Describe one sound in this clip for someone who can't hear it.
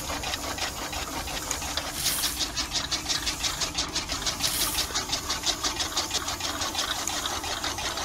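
A small machine rattles with a fast, steady shaking.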